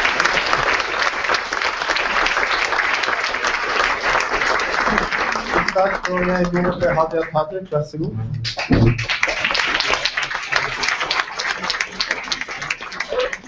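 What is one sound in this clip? A crowd applauds in a room.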